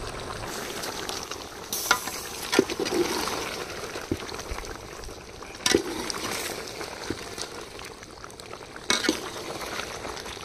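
A pot of stew bubbles and sizzles.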